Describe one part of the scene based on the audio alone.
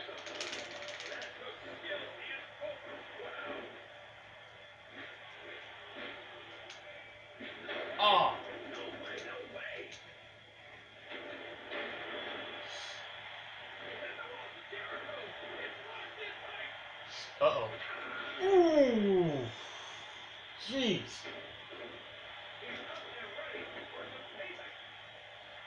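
Wrestling video game sounds play through a television speaker.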